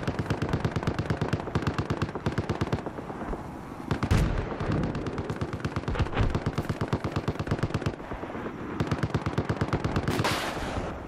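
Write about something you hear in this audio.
A rifle fires in rapid, repeated bursts.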